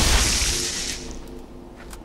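An energy blade swings with a loud, buzzing whoosh.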